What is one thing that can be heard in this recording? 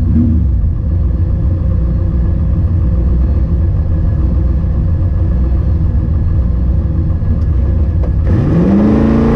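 A car engine idles with a deep, loud rumble inside the cabin.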